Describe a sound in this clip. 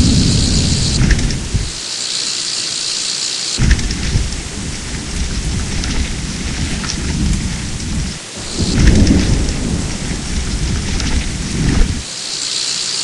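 Bicycle tyres rumble over rough ground.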